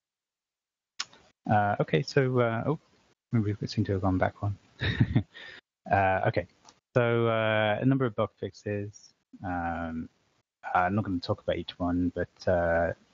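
A man speaks calmly through a microphone, as if presenting over an online call.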